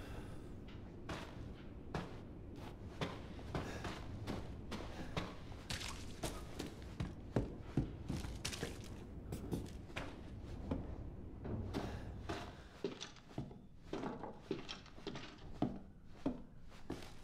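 Footsteps thud slowly on creaking wooden floorboards.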